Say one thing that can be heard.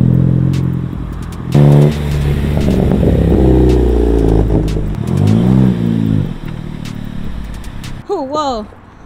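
A car engine rumbles and revs nearby.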